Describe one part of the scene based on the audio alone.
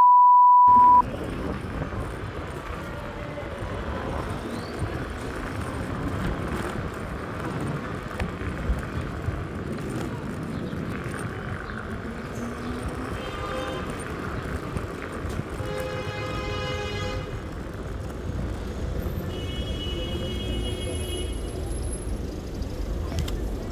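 Wind rumbles outdoors on a street.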